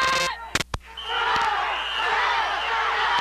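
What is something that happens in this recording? A crowd of men and women shouts and cheers excitedly outdoors.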